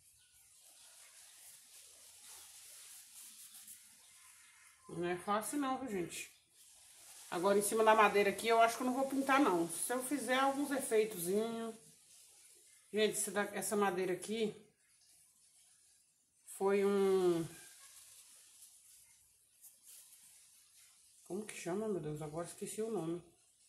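A paintbrush brushes softly across wood.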